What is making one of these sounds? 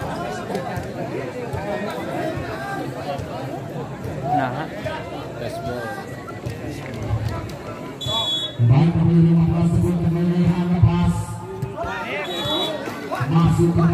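A large crowd chatters and cheers loudly.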